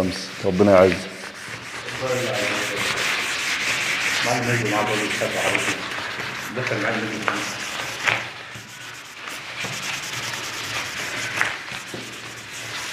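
Hands rub and sand a wooden surface with a steady scratchy hiss.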